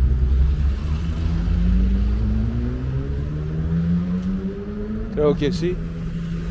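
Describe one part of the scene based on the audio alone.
A car drives along a street.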